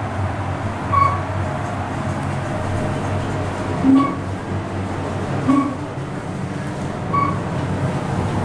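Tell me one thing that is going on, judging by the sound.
An elevator beeps briefly several times.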